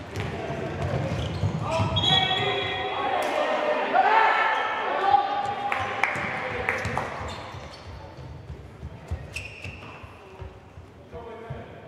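A crowd murmurs and cheers in a large echoing hall.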